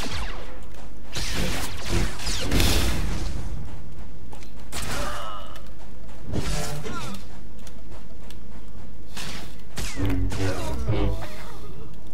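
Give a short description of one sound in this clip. Energy blades hum and clash in a fight.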